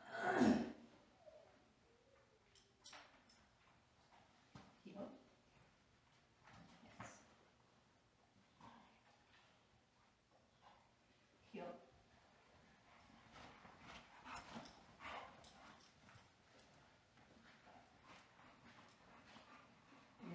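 A woman speaks calmly to a dog, heard from across an echoing room.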